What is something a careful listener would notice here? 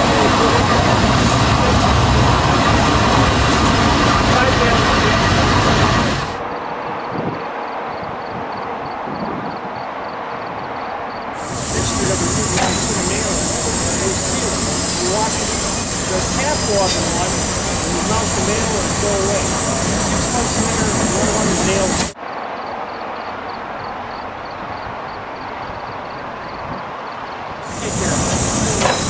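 Steam hisses loudly from a locomotive's cylinder cocks.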